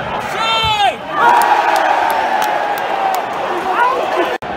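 A man close by shouts and cheers.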